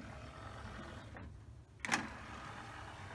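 A disc tray slides shut with a thump.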